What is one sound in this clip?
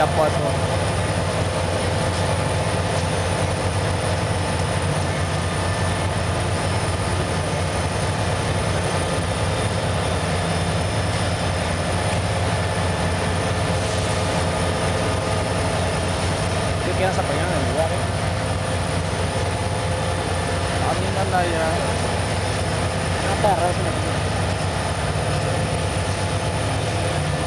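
Diesel locomotives rumble loudly close by.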